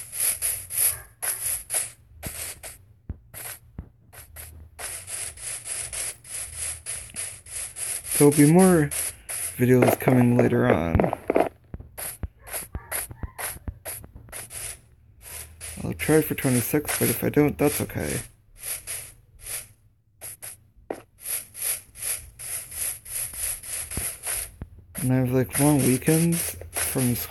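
Footsteps patter on grass and dirt at a steady walking pace.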